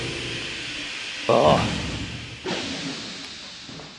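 Heavy metal lift doors slide open with a loud rumbling clank.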